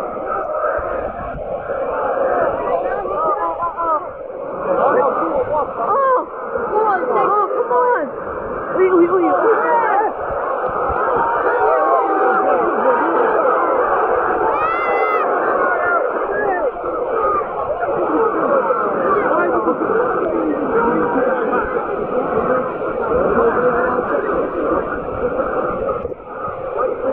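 A large stadium crowd roars and cheers loudly all around.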